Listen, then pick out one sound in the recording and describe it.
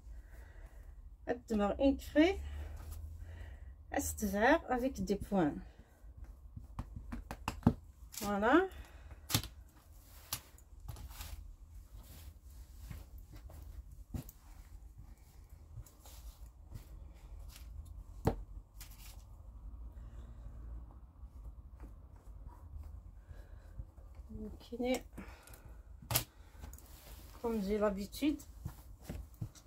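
Satin fabric rustles and swishes as hands smooth and lift it.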